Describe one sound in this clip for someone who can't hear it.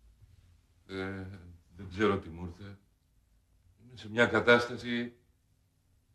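A man speaks loudly and with strain, close by.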